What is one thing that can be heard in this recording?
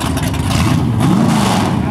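An engine revs up sharply close by.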